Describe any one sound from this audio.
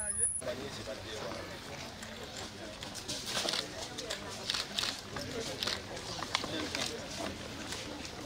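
Crutches tap on the ground as people walk.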